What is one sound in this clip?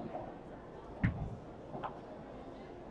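Padel rackets hit a ball with sharp pops.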